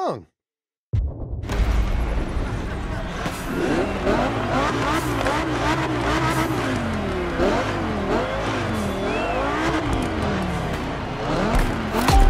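A sports car engine idles and revs loudly.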